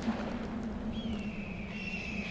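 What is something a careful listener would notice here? A bird of prey cries overhead.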